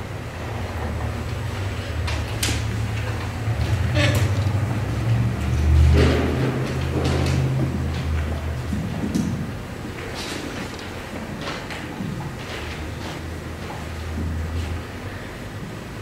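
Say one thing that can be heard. A microphone thumps and rumbles as it is handled.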